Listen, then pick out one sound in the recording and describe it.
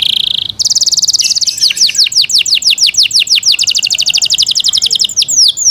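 A canary sings loudly and close by in rapid trills and falling whistles.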